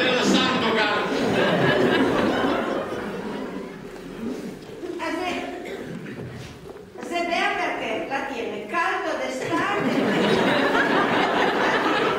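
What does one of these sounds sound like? A man and a woman talk with animation on a stage, heard from a distance in an echoing hall.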